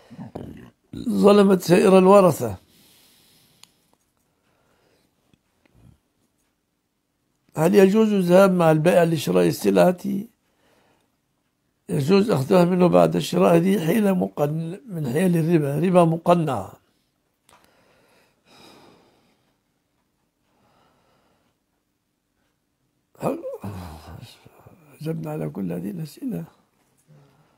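An elderly man speaks calmly into a close microphone, pausing often.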